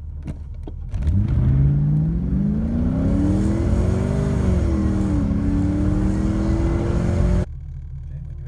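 A powerful car engine roars and climbs in pitch as the car speeds up hard.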